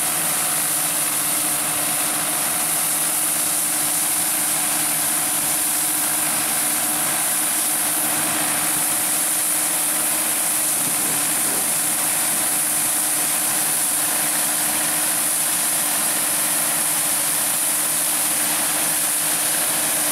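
A harvesting machine clatters and rattles as it cuts through grain.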